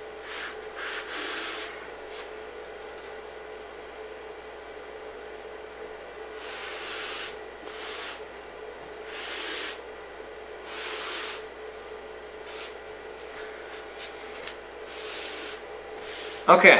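A damp sponge swishes across a chalkboard in repeated strokes.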